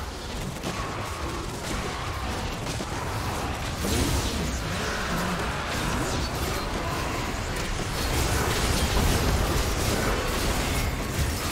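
Blades and blows clash and thud rapidly.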